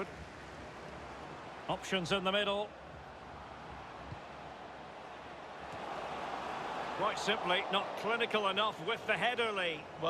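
A large crowd roars in a stadium.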